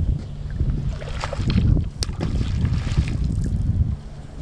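Water splashes as a large animal breaks the surface nearby.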